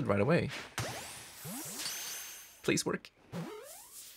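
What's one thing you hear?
A bright magical burst crackles and fades.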